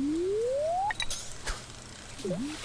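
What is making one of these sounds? A fishing bobber plops into water.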